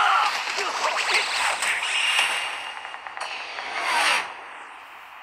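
Energy blasts whoosh and crackle in a fight.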